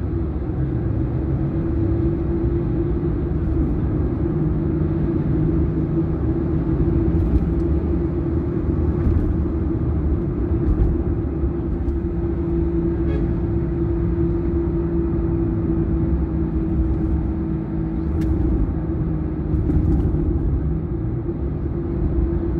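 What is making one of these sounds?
A car engine hums steadily as it drives along a highway.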